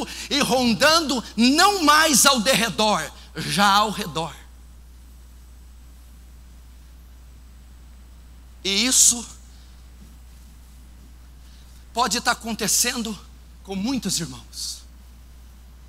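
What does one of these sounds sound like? A man preaches with animation through a microphone, in bursts with long pauses.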